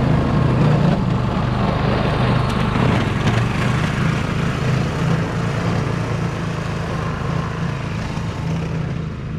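A snowblower engine roars steadily close by and slowly moves away.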